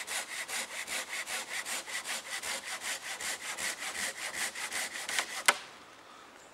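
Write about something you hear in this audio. A small hand saw cuts through a log with quick, even strokes.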